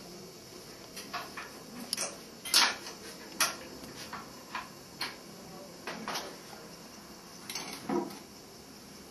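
Small objects clink and knock as a man handles them.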